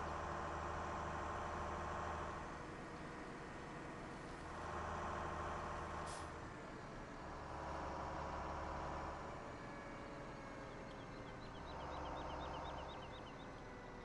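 A truck engine revs up and down in waves.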